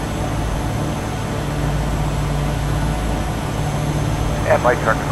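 A propeller engine drones steadily from inside a small plane's cockpit.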